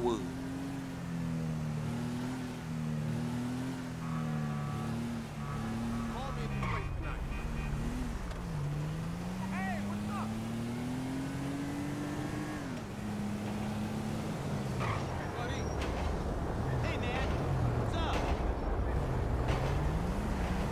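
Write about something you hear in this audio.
A car engine hums and revs up and down as the car drives along a road.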